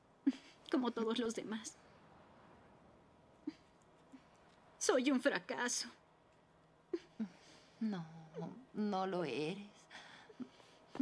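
A woman speaks tearfully.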